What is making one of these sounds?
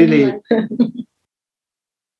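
A woman laughs cheerfully over an online call.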